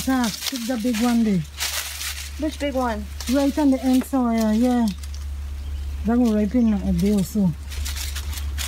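A woman talks with animation nearby.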